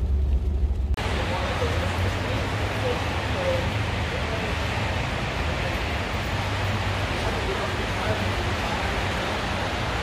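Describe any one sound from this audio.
Rain falls steadily and hisses on wet pavement outdoors.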